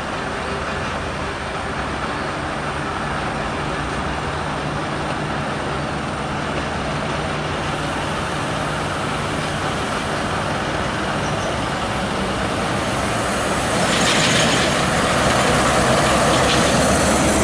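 A heavy truck engine drones as it approaches.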